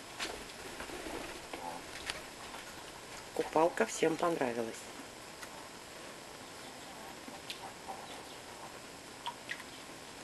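A parakeet's wings flutter briefly.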